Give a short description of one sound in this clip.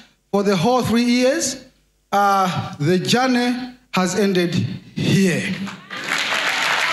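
A man speaks loudly and with energy through a microphone in a large hall.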